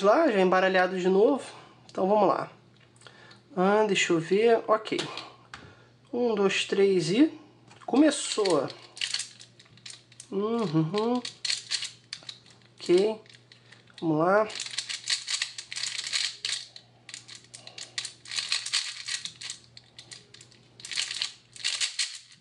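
A puzzle cube's layers click and rattle as they are turned quickly.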